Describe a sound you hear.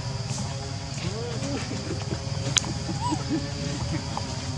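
A baby long-tailed macaque squeals.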